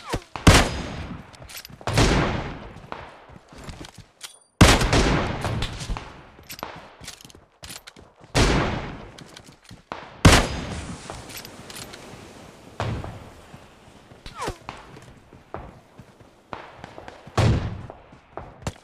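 Rifle shots crack loudly and echo away, again and again.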